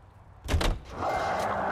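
A car engine starts and idles.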